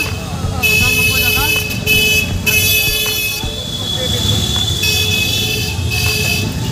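Traffic and people make a busy street bustle outdoors.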